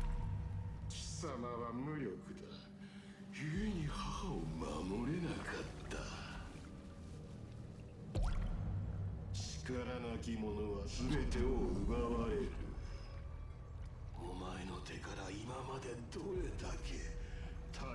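A man speaks in a low, menacing voice.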